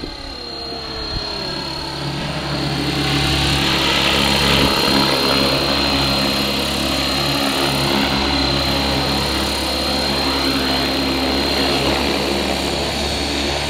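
A model helicopter's motor whines and its rotor buzzes steadily, growing louder as it comes close.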